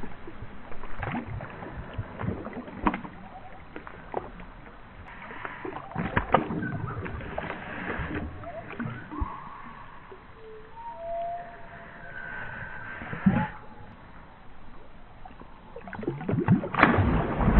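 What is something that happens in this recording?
A dog splashes as it swims through water.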